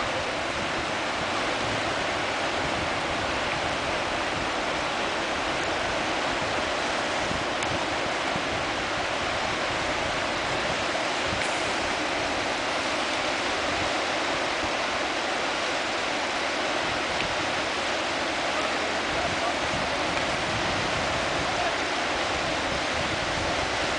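Water rushes and roars steadily over a dam close by.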